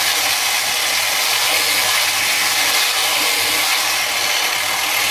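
A belt sander whirs steadily.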